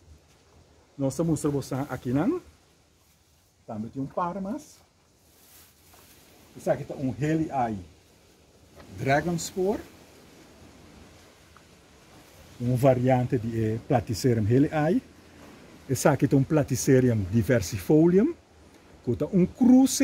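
An older man talks calmly close by, in short bursts.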